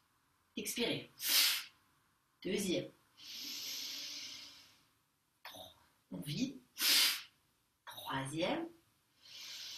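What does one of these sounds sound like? A young woman speaks calmly and softly close by.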